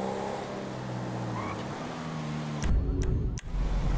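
A car engine revs as the car speeds along a street.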